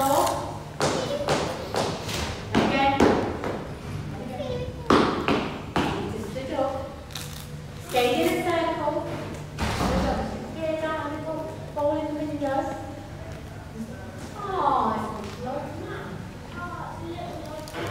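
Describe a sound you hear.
A young boy speaks with animation.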